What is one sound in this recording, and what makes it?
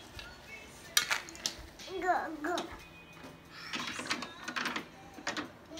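A plastic toy house clicks and clatters under small hands.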